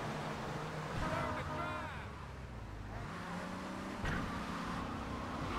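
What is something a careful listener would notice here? Car tyres screech as a car drifts around a corner.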